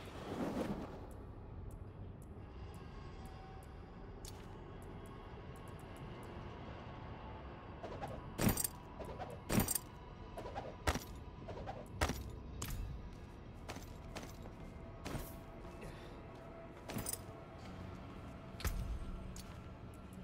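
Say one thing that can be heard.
Short clicks and chimes of a video game sound now and then.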